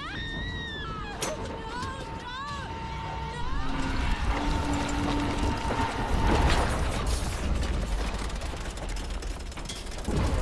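Wind howls in a snowstorm.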